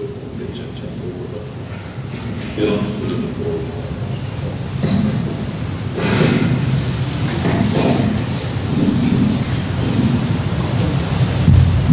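A man speaks steadily into a microphone, heard through loudspeakers.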